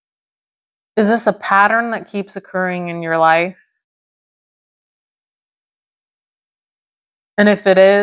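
A middle-aged woman speaks calmly and thoughtfully, close to a microphone.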